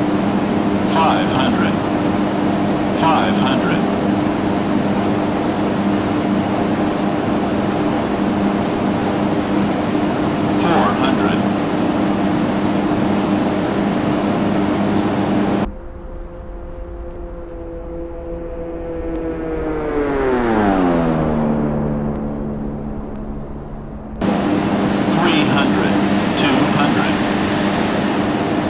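A small plane's engine drones steadily from inside the cabin.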